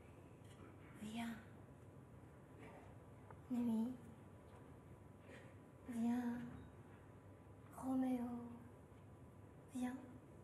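A young woman sings short phrases, with a slight echo in a large hall.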